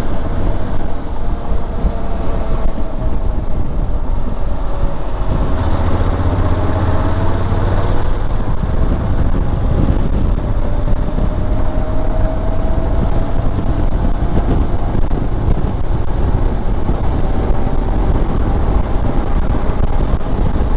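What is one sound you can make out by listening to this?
Wind rushes loudly past the rider outdoors.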